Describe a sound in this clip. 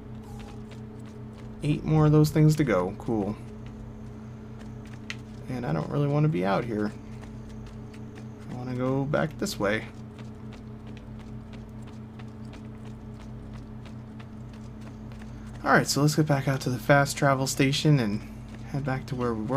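Quick footsteps patter on stone as someone runs.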